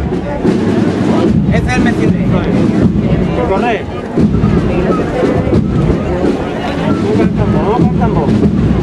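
A crowd of people chatter close by outdoors.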